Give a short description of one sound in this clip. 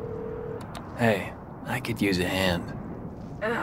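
A young man speaks casually into a payphone.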